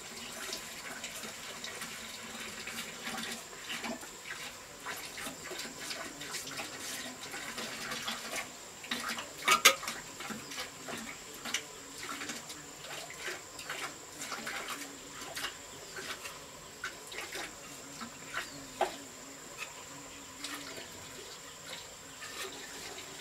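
A trowel scrapes across wet cement.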